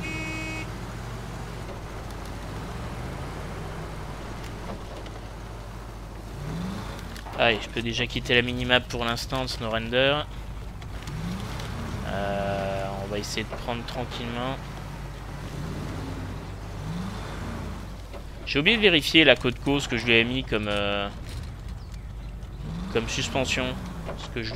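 A truck engine rumbles steadily as the vehicle crawls over rough ground.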